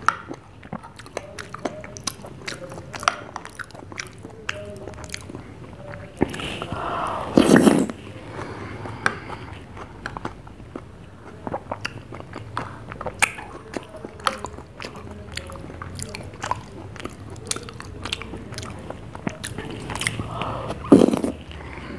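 A metal spoon clinks and scrapes against a glass.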